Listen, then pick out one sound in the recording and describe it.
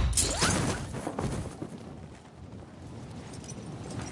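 Wind rushes past loudly during a fall through the air.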